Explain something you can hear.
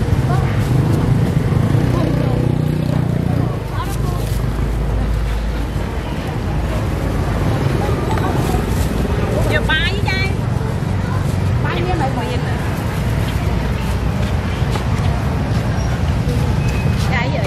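A busy outdoor market hums with distant traffic.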